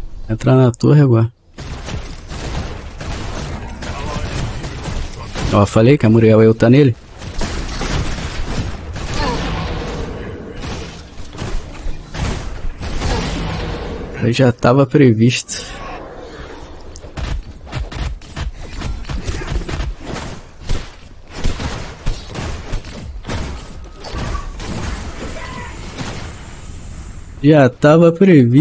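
A man speaks through a headset microphone.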